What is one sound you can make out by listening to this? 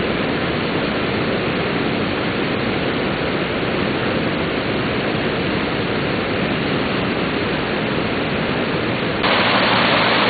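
A wide river flows and swirls steadily.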